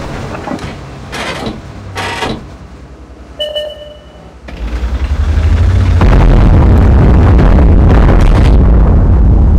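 A tank engine rumbles low and steadily, growing louder partway through.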